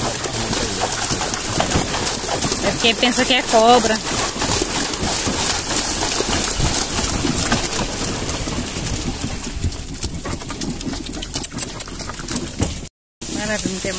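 A horse's hooves splash and squelch through mud and water.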